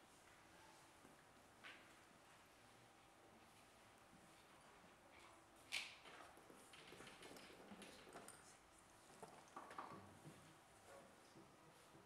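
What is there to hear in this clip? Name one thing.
Small clicks and knocks come from equipment being handled close by.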